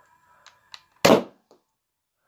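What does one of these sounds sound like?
A toy foam-dart blaster fires with a sharp click.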